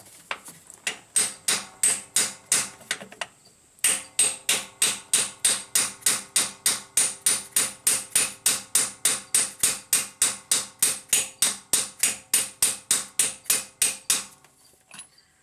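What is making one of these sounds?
A ratchet wrench clicks rapidly and steadily, close by.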